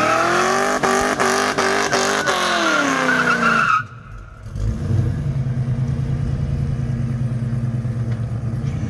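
A car engine roars loudly at high revs, then drops to a deep idling rumble.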